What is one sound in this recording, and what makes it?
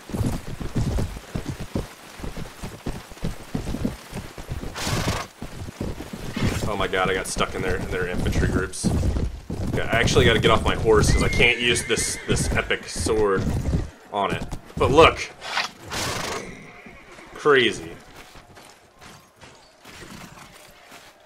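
Many horses' hooves thud on the ground.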